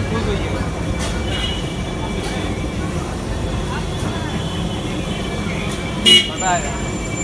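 Tomatoes sizzle softly on a hot griddle.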